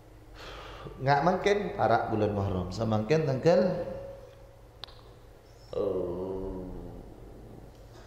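A man speaks calmly into a close microphone, in a chanting, reciting manner.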